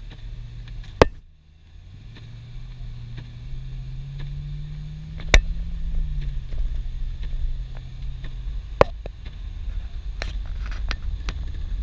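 A windshield wiper thumps across the glass.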